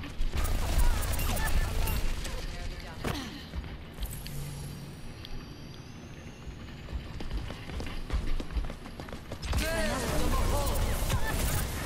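A rapid-fire gun shoots in bursts.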